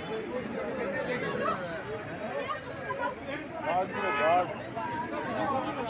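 A crowd of men and women talk and shout over each other close by, outdoors.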